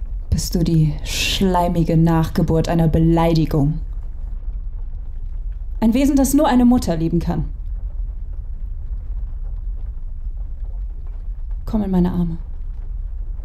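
A young woman speaks quietly and close by, in short phrases with pauses.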